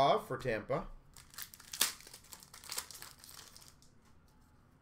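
A foil card pack crinkles and tears open close by.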